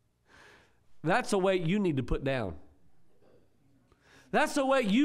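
An elderly man preaches with animation through a microphone.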